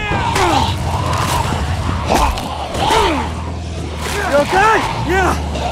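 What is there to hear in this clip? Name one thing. A crowd of people moan and snarl with rasping, groaning voices close by.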